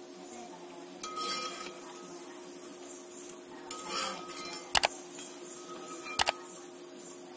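A metal spatula clinks and scrapes against a pan.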